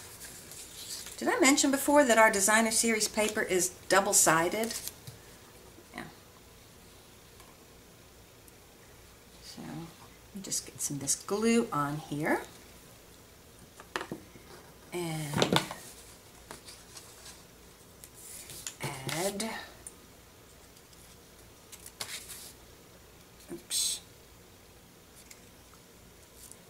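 Paper rustles and scrapes as it is handled.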